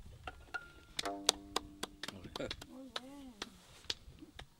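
A hurdy-gurdy plays notes up close.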